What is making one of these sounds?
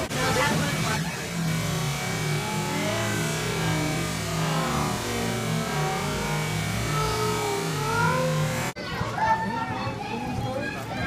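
A crowd of children and adults chatter in the background.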